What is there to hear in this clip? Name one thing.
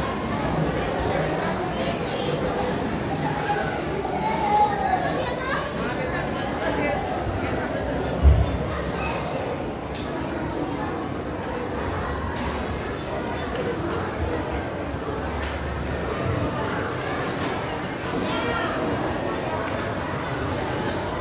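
A crowd of men and women murmurs and chatters nearby.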